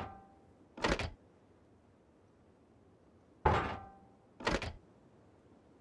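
A heavy door opens with a loud clang.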